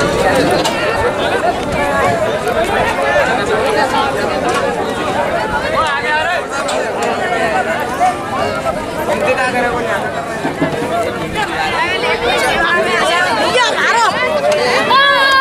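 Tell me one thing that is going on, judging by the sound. A large crowd of young people chants and shouts together outdoors.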